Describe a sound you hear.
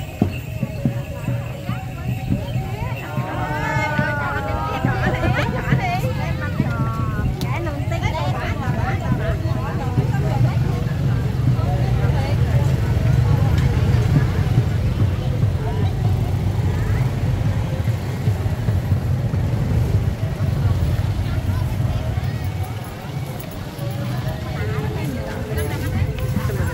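Footsteps shuffle on a paved path.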